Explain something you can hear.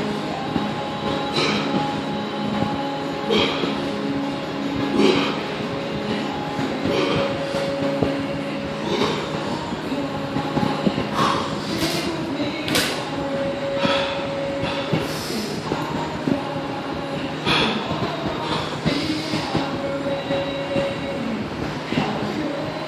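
A man exhales sharply with each lift.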